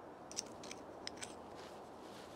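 Metal tools clink and click together in hands.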